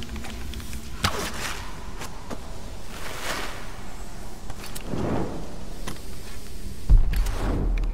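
A bowstring snaps as an arrow is loosed.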